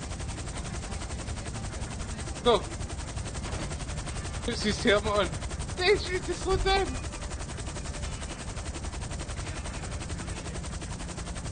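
A helicopter's rotor thumps as it hovers.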